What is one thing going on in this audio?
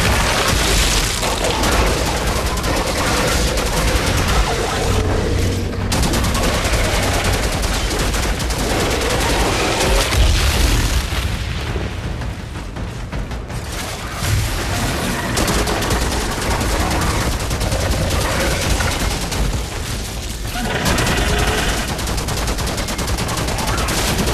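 Monsters screech and snarl.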